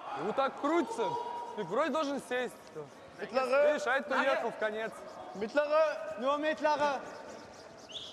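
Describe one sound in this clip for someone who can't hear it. Young men shout loudly nearby.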